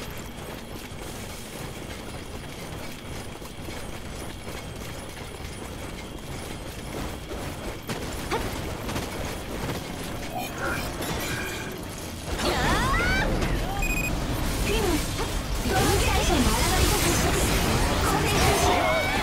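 Blades clash and slash in a game battle.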